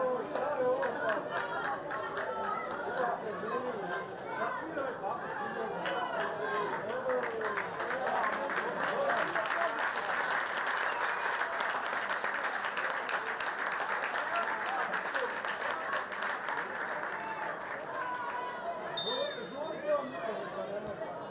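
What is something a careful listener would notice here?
A crowd of spectators chatters and shouts across a large open stadium.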